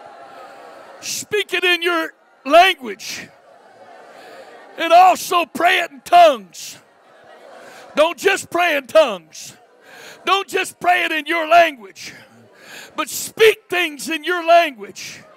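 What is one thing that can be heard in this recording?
A man speaks loudly and fervently through a loudspeaker, in bursts with pauses.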